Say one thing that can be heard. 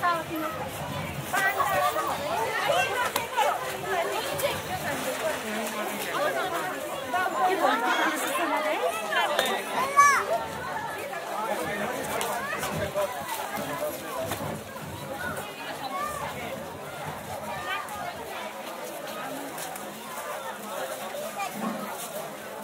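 A crowd of men and women chatters all around outdoors.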